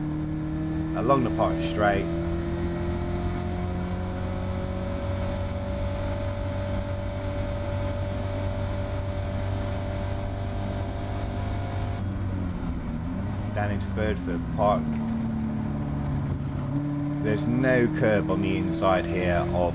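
A racing car engine roars and climbs in pitch as it speeds up, then drops as it slows.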